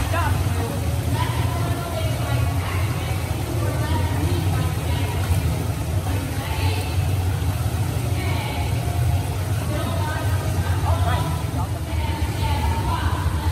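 Water splashes as a child kicks in a pool.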